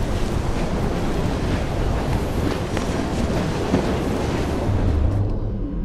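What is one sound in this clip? Footsteps thud quickly on a rooftop as a figure runs.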